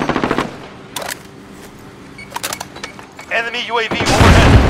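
A rifle's magazine clicks and clacks during a reload.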